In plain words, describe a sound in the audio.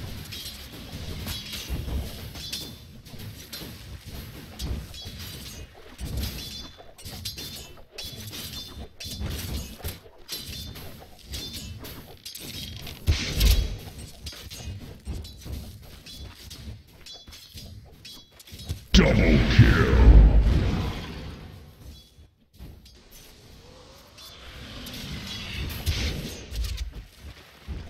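Game weapons clash and strike in quick, repeated hits.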